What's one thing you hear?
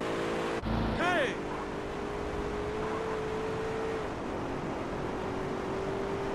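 A car engine revs steadily as the car drives off.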